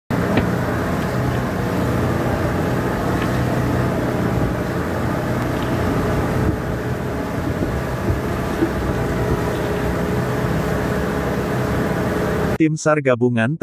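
Water churns and splashes behind a moving boat.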